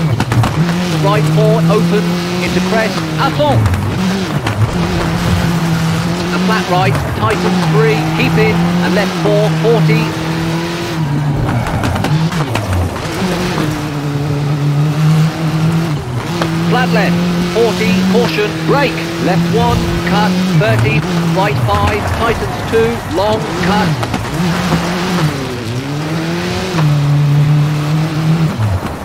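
Tyres crunch and skid on gravel.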